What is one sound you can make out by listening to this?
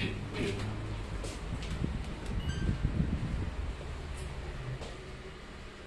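Elevator doors slide shut with a soft rumble.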